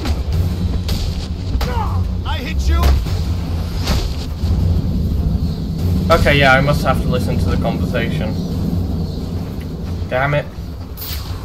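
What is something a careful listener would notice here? Heavy punches and kicks thud against bodies.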